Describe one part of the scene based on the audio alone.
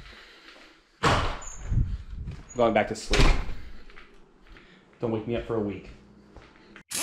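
A young man talks casually close to the microphone.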